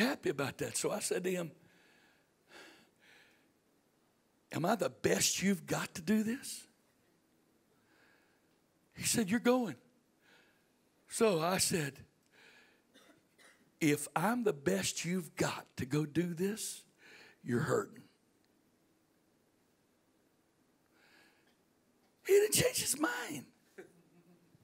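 A middle-aged man speaks into a microphone in bursts with pauses, heard through a loudspeaker in a room.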